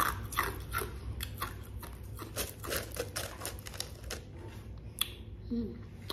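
Ice crunches loudly between teeth, close up.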